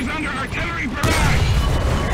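A shell strikes metal armour with a sharp bang.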